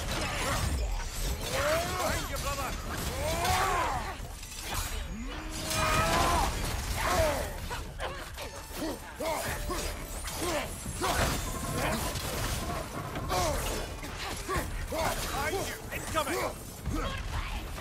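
Metal blades slash and clang in a fight.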